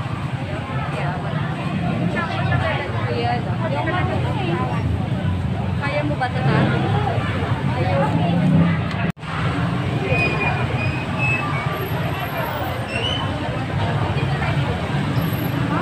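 A crowd of men and women chatter all around, close and far.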